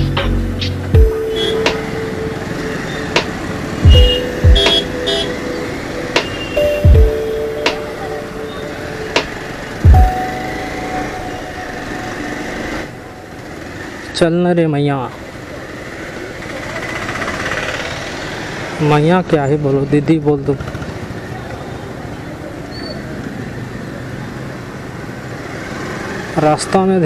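Vehicle horns honk in busy street traffic.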